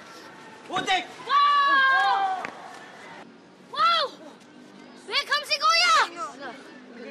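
Young boys shout and whoop excitedly outdoors.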